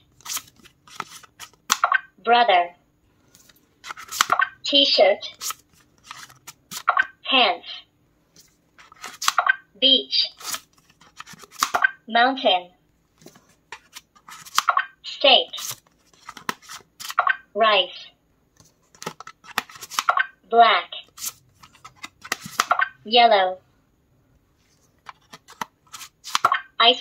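Cards slide into a plastic slot with clicks.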